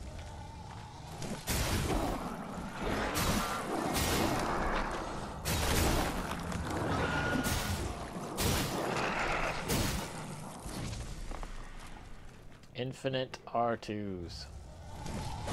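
Footsteps thud on soft ground.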